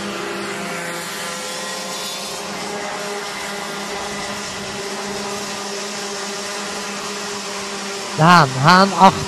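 Kart engines buzz and whine steadily nearby.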